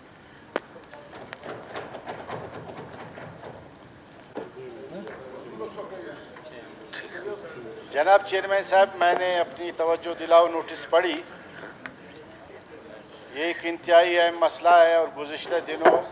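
A middle-aged man speaks steadily into a microphone in a large echoing hall.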